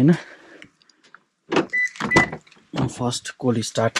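A car door handle clicks and the door opens.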